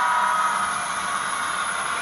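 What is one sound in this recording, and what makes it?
A small model train rolls along its track.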